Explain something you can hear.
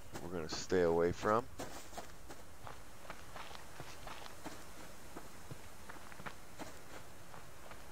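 Footsteps crunch steadily over dry grass and gravel.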